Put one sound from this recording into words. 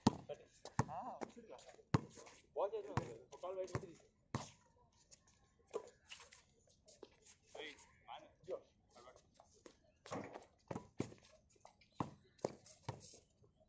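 A basketball bounces sharply on a hard outdoor court.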